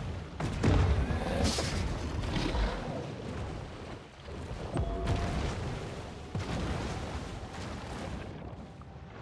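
Water splashes as a creature thrashes and leaps.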